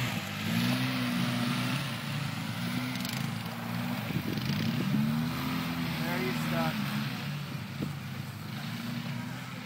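An all-terrain vehicle engine drones and revs nearby outdoors.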